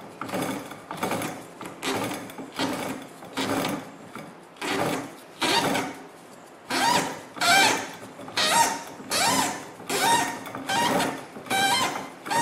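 Twine rasps as it is pulled tight around a bundle.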